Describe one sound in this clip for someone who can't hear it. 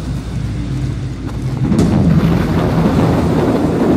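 A fiery blast roars up close.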